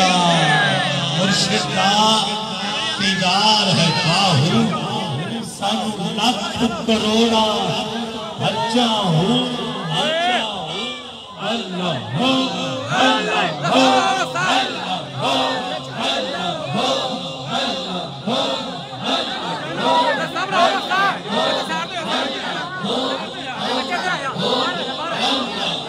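A large crowd of men shouts and chants loudly outdoors, close by.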